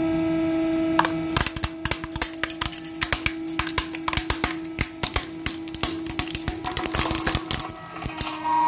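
A plastic toy fish cracks and snaps loudly as a hydraulic press crushes it.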